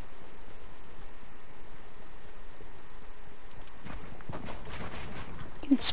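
Footsteps patter quickly over the ground.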